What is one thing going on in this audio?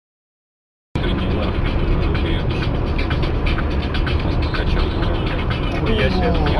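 A car engine hums with tyres rumbling on the road.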